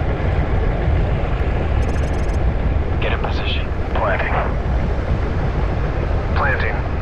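A submarine engine hums with a steady low underwater rumble.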